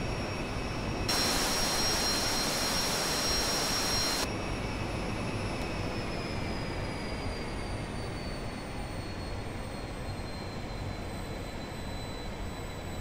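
A jet engine roars and whines steadily.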